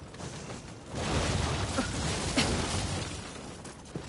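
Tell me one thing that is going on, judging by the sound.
A blast of smoke bursts with a loud rushing rumble.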